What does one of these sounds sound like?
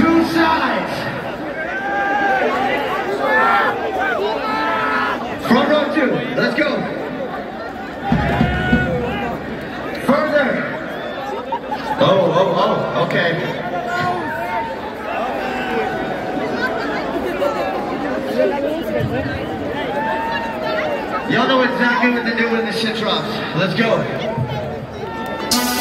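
A band plays loud music through big loudspeakers outdoors.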